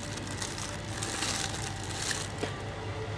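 Plastic packaging rustles as a hand touches it.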